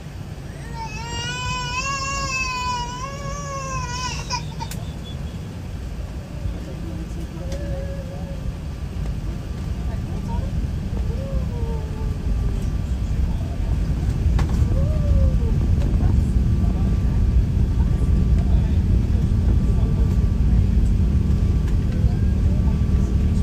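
A jet airliner's engines roar steadily and grow louder as it speeds down the runway.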